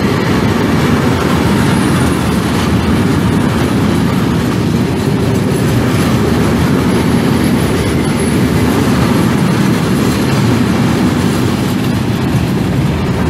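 A loaded freight train rumbles past at speed, its wheels clattering on the rails.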